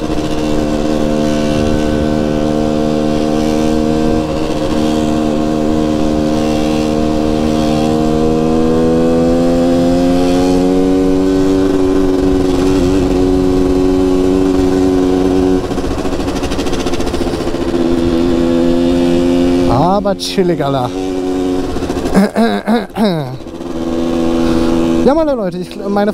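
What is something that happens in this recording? A motorcycle engine drones steadily close by, rising in pitch as it speeds up.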